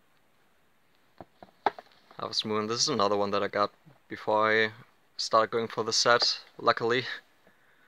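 A plastic game case scrapes as it slides out of a shelf and back.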